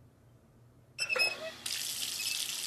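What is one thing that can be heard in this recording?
A shower tap squeaks as it is turned.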